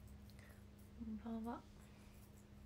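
A young woman speaks softly and briefly, close by.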